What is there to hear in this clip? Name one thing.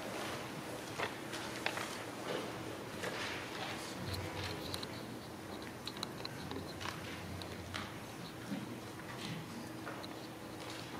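A microphone knocks and thumps as it is adjusted.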